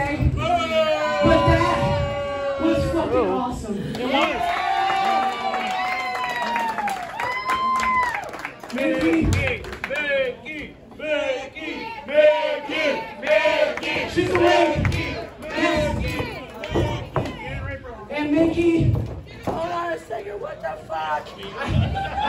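A man shouts loudly into a microphone, heard through loudspeakers in an echoing hall.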